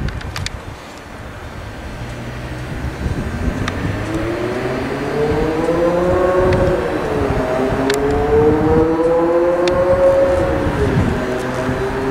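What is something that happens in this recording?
An electric train's wheels rumble on the rails as it slows to a stop.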